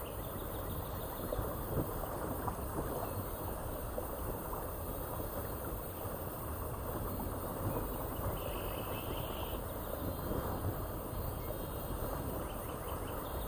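Water rushes and splashes steadily around a raft drifting down a river.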